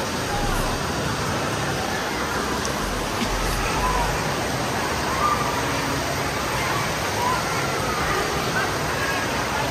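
Water splashes and rushes steadily close by.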